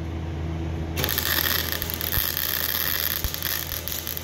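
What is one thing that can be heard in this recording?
A welding torch crackles and sizzles loudly as it welds metal.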